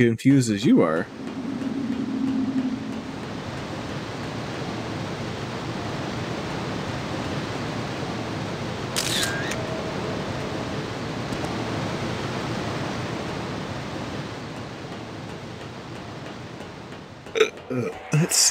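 Water ripples and laps softly nearby.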